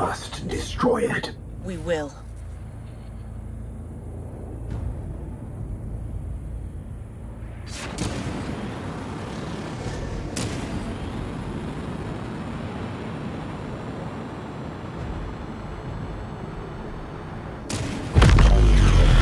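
A spaceship engine hums steadily and roars louder as it speeds up.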